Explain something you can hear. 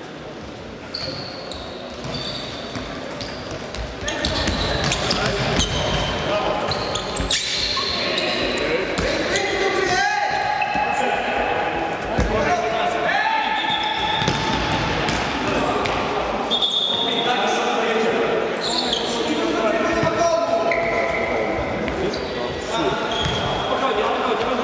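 Sneakers squeak on a sports floor.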